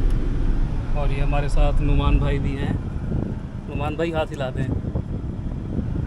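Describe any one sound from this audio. A young man in the back seat talks and laughs nearby.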